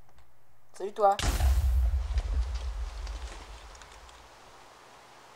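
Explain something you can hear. A loud burst of snow explodes and fades away.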